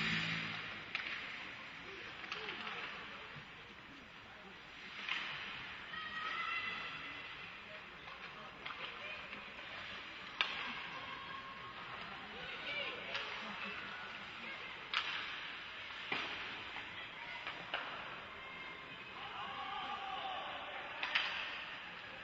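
Hockey sticks knock sharply against a puck in a large echoing rink.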